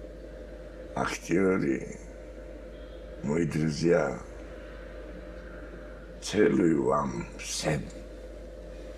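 An elderly man speaks with emotion, close to the microphone, in short bursts.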